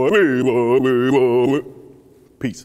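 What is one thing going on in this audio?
A man exclaims with relish, close by.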